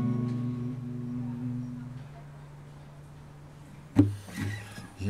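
Acoustic guitars ring out with a final strummed chord that slowly fades.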